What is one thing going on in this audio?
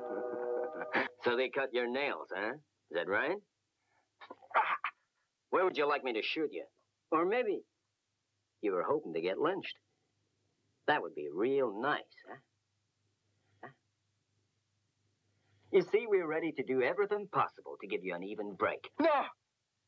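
A man speaks calmly and mockingly, close by.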